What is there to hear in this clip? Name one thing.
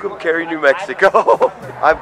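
An older man laughs loudly.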